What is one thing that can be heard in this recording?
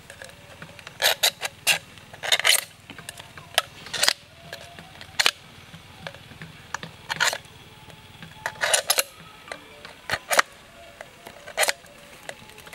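A knife scrapes and cuts into a metal can with sharp scratches.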